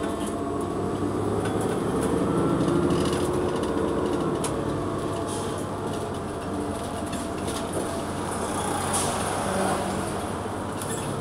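The bus rattles and clatters as it rolls along.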